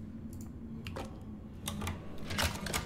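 A key clicks as it turns in a lock.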